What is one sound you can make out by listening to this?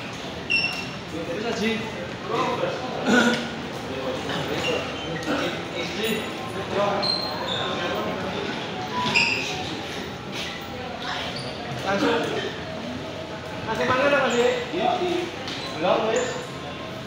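Several men chatter nearby in an echoing lobby.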